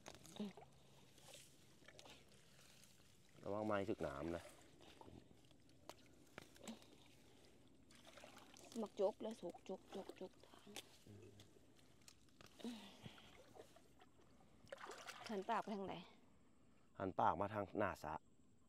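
Hands splash in shallow muddy water.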